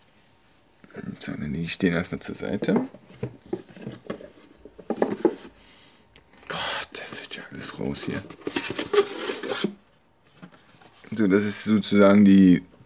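Cards and cardboard rustle and tap as they are handled.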